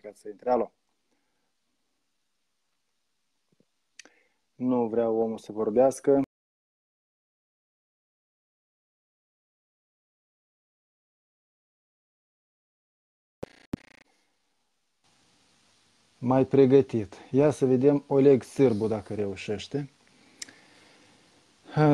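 A man speaks calmly through a phone microphone, with long pauses.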